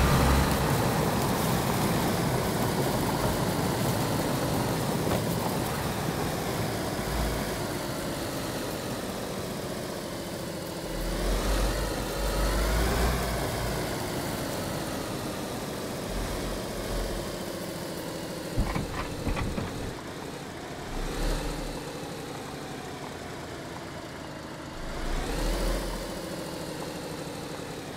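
Tyres roll over grass and gravel.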